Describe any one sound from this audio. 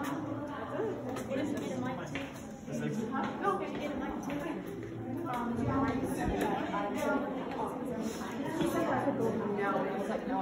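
Several adults talk at once nearby, with voices echoing in a large hollow space.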